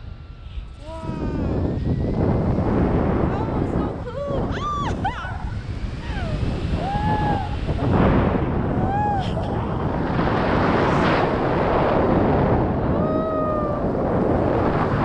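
A woman speaks and exclaims excitedly close by.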